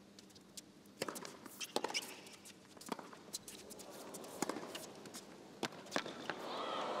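A tennis ball is struck back and forth with sharp pops of rackets.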